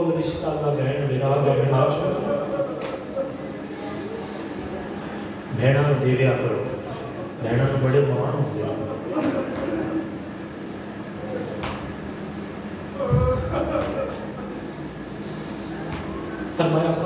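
A young man speaks loudly and with passion into a microphone, heard through loudspeakers in a large echoing hall.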